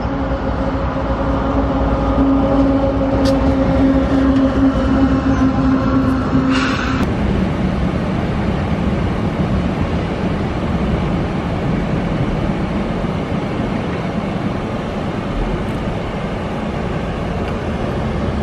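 A freight train rumbles and clatters past close by.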